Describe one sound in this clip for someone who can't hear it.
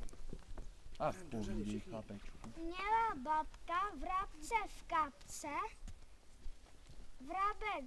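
Children talk in high voices nearby.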